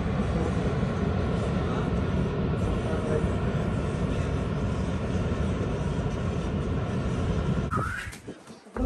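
A waterfall roars steadily in the distance.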